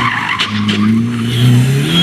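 Gravel and dirt spray against the ground under spinning tyres.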